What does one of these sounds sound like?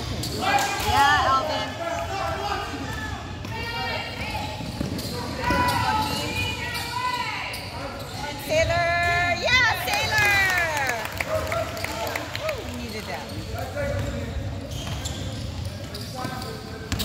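Young players and spectators call out in a large echoing hall.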